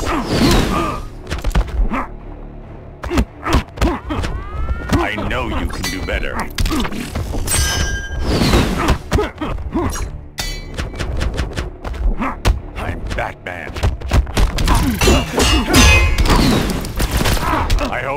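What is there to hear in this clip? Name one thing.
Punches and kicks land with heavy thuds and sharp smacks.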